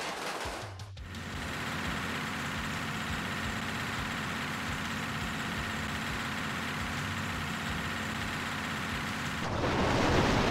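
A large truck engine hums steadily.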